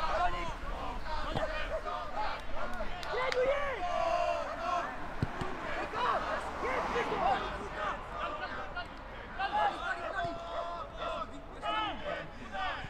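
Men shout and call out across an open field.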